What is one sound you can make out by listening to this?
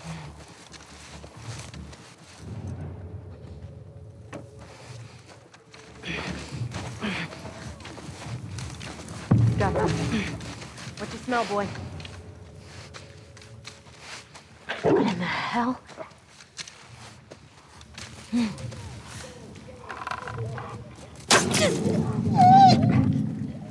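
Tall grass rustles as someone crawls through it.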